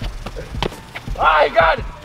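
A basketball hits the rim and net.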